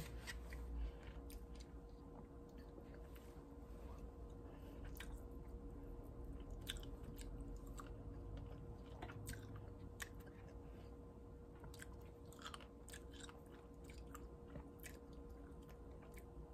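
A woman chews and smacks her lips softly.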